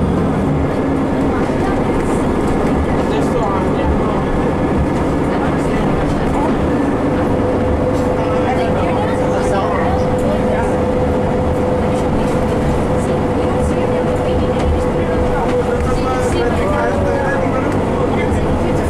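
The bus's interior rattles and creaks as it moves.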